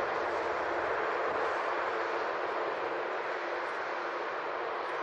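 A jet airliner's engines roar steadily as the plane taxis nearby.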